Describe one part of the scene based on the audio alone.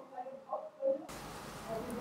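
A spatula scrapes a pot.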